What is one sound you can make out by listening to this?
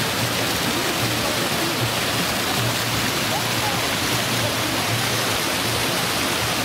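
Fountain jets splash and gush steadily into a pool.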